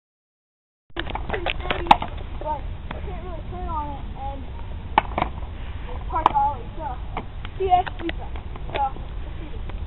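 A skateboard clacks on the ground.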